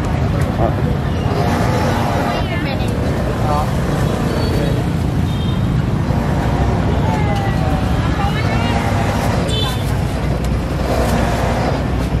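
A motorbike engine idles nearby.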